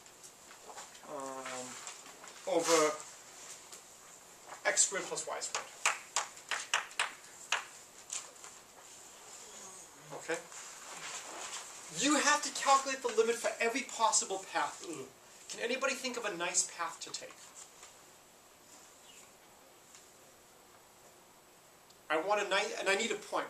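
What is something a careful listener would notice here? A young man speaks clearly and steadily, as if lecturing.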